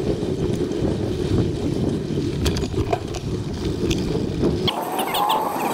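Bicycle tyres rumble and rattle over a dirt trail.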